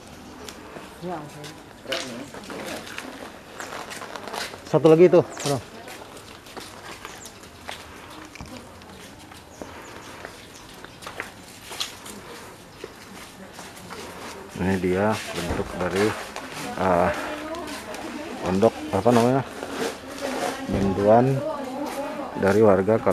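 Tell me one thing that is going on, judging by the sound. Young men talk nearby.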